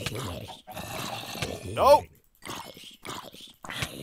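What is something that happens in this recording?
A sword strikes a zombie with a dull thud.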